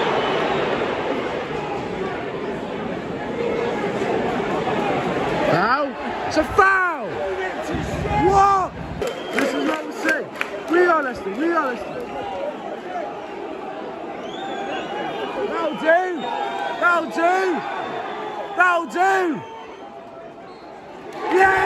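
A large stadium crowd roars and murmurs outdoors.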